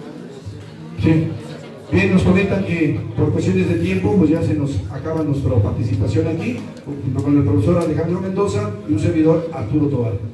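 A man speaks loudly through a microphone and loudspeaker in an echoing room.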